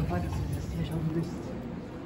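An escalator hums steadily nearby.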